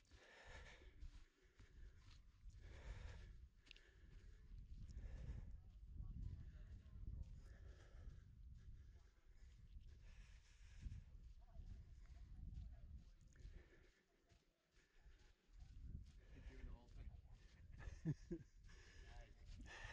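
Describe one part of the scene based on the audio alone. Wind gusts and buffets outdoors.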